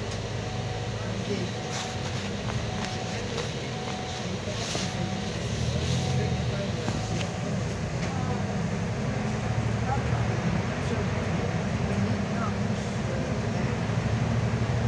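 Tyres hiss on a slushy road.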